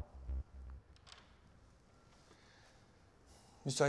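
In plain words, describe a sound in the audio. A door opens with a soft click.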